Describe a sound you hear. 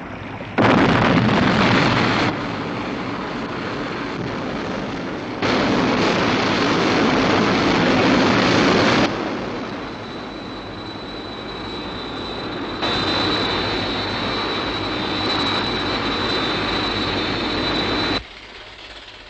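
A jet engine roars loudly in flight, rising and falling in waves.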